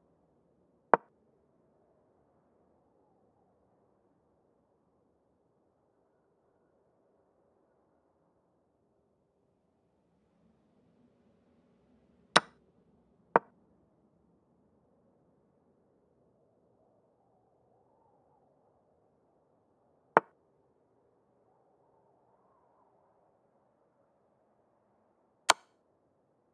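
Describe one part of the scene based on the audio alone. Short, sharp clicks sound as chess pieces are moved.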